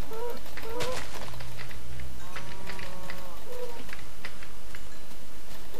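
A sword strikes an animal with short, sharp hits.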